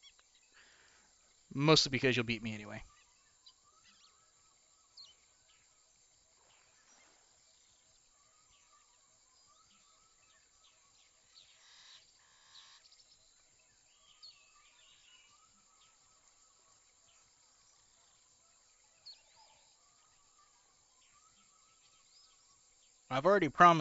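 A fishing reel clicks softly as line winds in.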